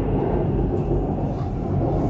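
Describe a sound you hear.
A passing train rushes by close outside.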